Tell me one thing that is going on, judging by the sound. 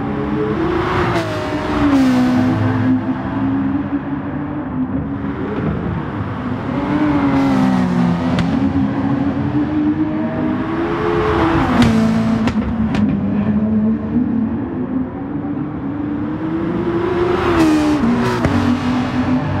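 Racing cars whoosh past close by.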